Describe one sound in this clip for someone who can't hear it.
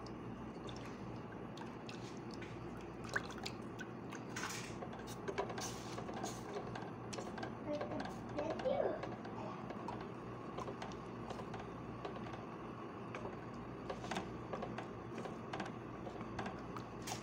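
A thick mixture bubbles and squelches in a pot.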